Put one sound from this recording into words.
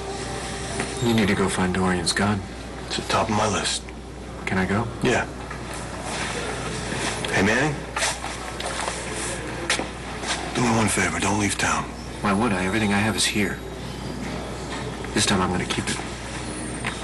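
A man speaks tensely and quietly nearby.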